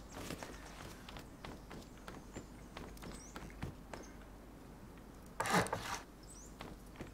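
Footsteps crunch steadily on sandy ground.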